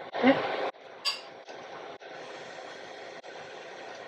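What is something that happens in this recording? A gas stove burner clicks as it is lit.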